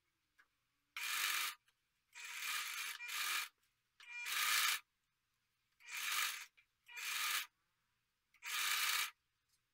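A sewing machine runs in short bursts.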